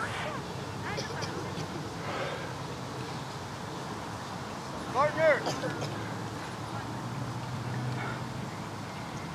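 Children shout and call out outdoors across an open field.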